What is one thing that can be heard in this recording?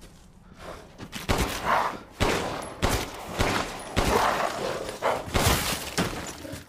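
Pistol shots bang out several times, close by.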